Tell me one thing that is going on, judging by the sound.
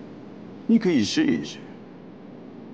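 A middle-aged man speaks calmly and firmly up close.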